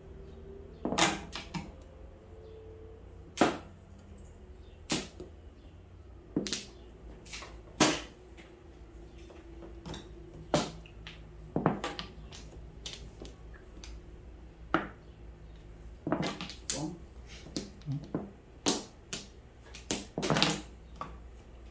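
Plastic game tiles clack sharply against each other and the table.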